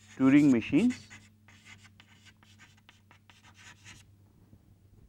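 Chalk taps and scratches on a board.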